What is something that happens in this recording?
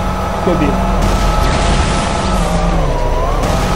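A crystal block shatters with a crackling burst.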